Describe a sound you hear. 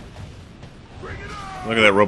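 A burst of fire roars.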